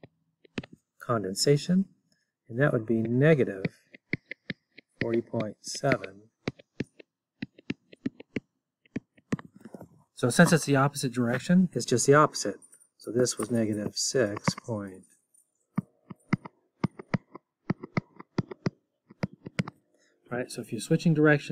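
A middle-aged man speaks calmly and clearly into a close microphone, in short phrases with pauses.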